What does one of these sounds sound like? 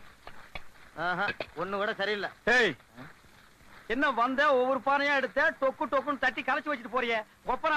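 A second man calls out loudly in reply.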